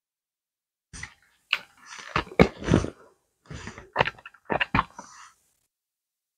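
A young woman sniffs several times.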